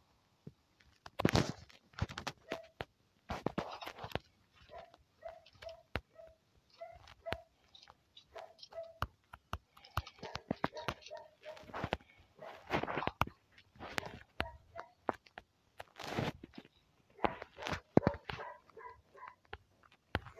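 Footsteps patter quickly on ground and wooden floors.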